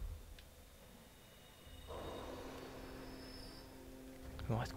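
A magic spell rings out with a bright shimmering hum.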